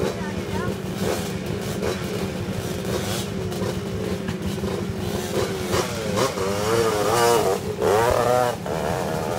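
A dirt bike engine revs and whines up close, rising and falling as the bike climbs a slope.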